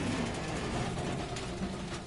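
Armoured vehicles roll along with engines droning.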